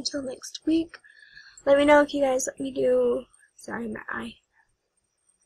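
A young woman talks expressively close to a microphone.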